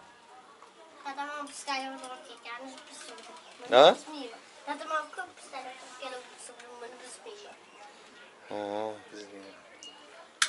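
A young child talks and calls out nearby.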